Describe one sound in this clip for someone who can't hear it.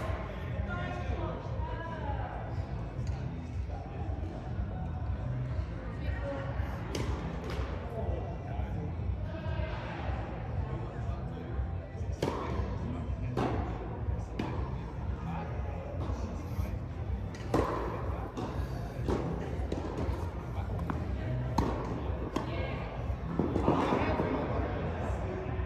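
Tennis balls are struck with rackets, with a hollow echo in a large hall.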